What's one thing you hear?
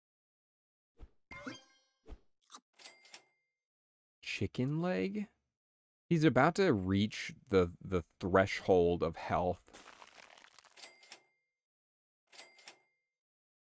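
Short game chimes and clicks sound now and then.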